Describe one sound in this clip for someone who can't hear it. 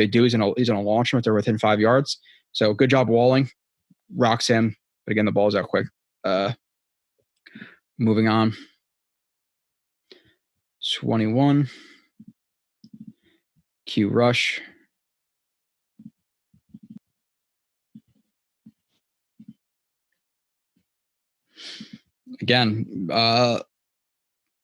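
A young man talks calmly and closely into a microphone, with pauses.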